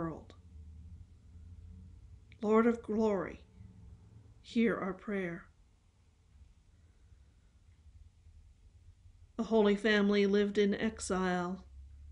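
An older woman speaks calmly and close, with pauses, heard through a webcam microphone.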